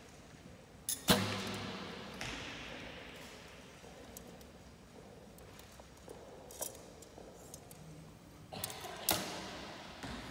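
A bow string snaps sharply as an arrow is loosed, echoing through a large hall.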